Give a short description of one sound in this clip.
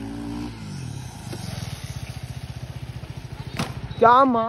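A single-cylinder sport motorcycle chugs at low revs.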